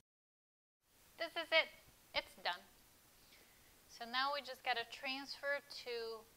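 A woman talks calmly and warmly, close to a microphone.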